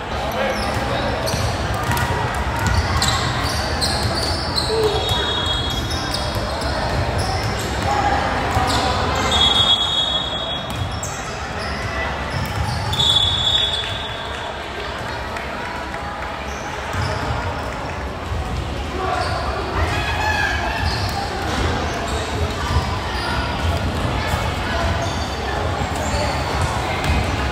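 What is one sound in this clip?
Players and spectators shout and chatter in the gym.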